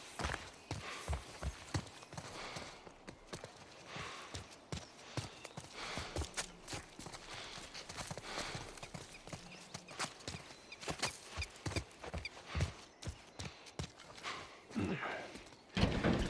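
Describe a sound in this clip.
Footsteps crunch steadily on gravel and leaves.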